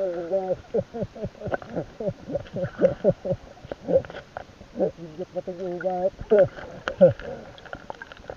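Air bubbles gurgle underwater close by.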